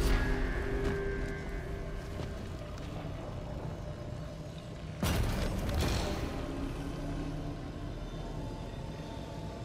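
Heavy footsteps thud on a hard floor.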